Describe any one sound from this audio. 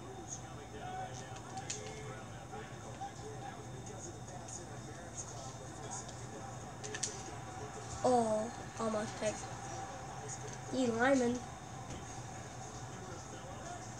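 A sports video game plays quietly through television speakers, with a low steady crowd murmur.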